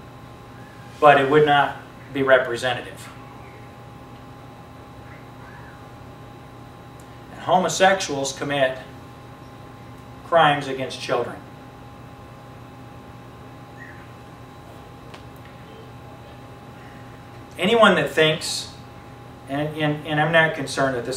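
A young man speaks with animation through a lapel microphone, pausing between phrases.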